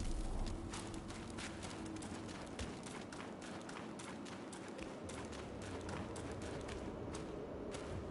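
Footsteps tread on stone.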